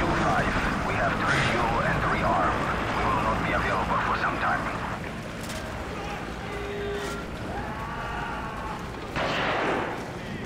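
Footsteps crunch on grass and gravel.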